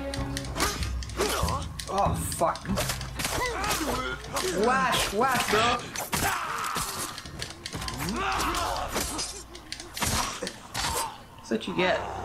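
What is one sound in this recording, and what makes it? Swords clash and strike in a fierce fight.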